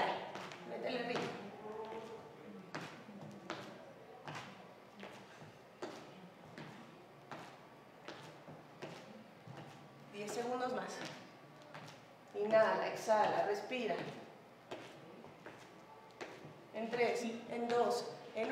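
Sneakers step and tap on a wooden floor.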